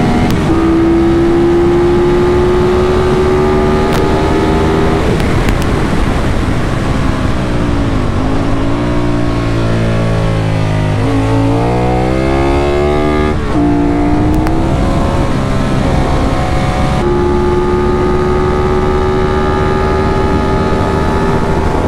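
Wind rushes past loudly.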